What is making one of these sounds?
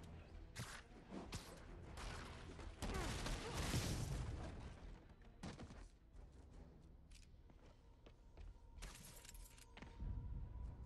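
Heavy punches and blows land in quick bursts.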